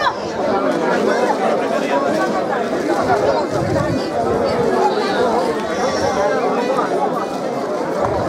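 Guitars and lutes strum along.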